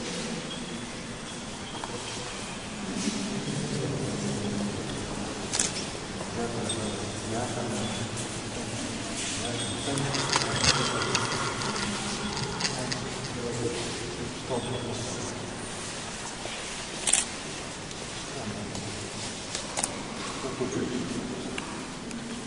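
Male voices sing a slow chant in an echoing hall.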